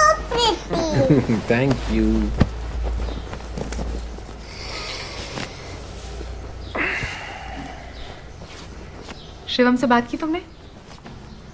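A small girl speaks in a high, excited voice close by.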